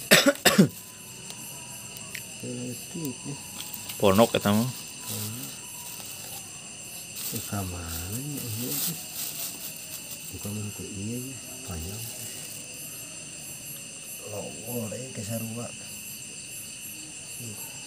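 Metal parts clink together.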